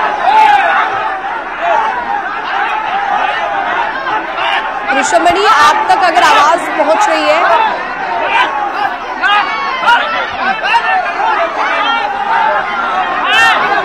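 A crowd of men talks at once, close by.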